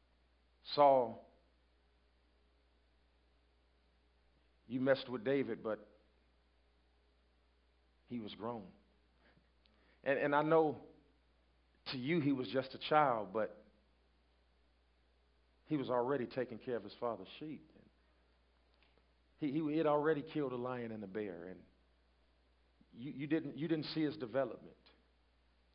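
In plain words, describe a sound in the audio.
A man speaks slowly and deliberately through a microphone, with long pauses.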